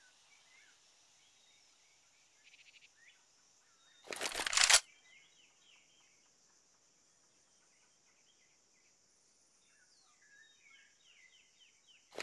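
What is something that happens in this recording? Footsteps patter softly on stone.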